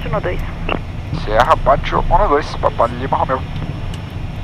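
A man speaks briefly over a headset radio.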